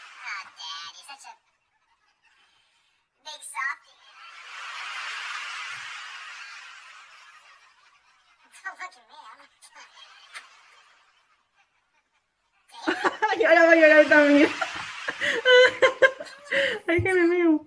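A young woman laughs up close.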